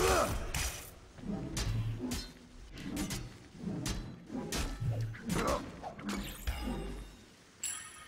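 Heavy blows thud and clang in a fast fight.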